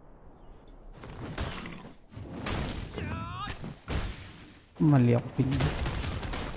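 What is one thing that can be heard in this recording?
Blades slash and strike with sharp impacts.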